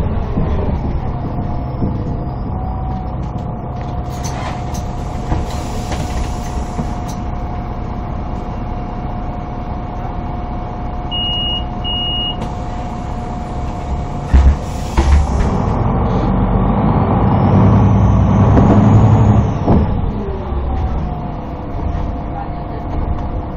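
A vehicle engine hums steadily from inside, rising as the vehicle pulls away.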